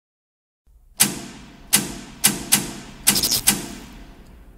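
Electrical switches click sharply several times.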